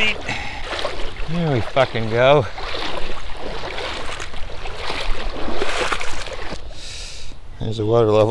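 Water splashes and sloshes around legs wading through a stream.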